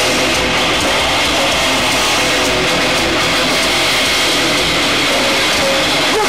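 A loud band plays heavy, distorted rock music.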